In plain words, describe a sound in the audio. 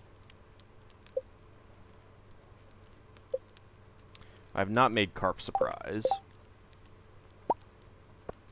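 Soft game menu blips sound as tabs switch.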